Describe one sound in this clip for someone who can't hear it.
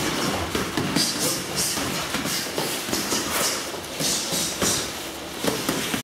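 Boxing gloves thump against each other and on pads in quick strikes.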